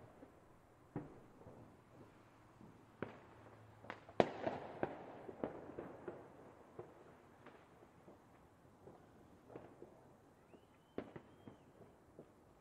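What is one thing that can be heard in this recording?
Fireworks bang and crackle overhead.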